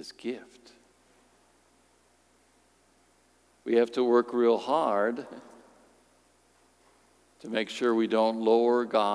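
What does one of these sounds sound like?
A middle-aged man speaks calmly into a microphone, with pauses between phrases, in a reverberant hall.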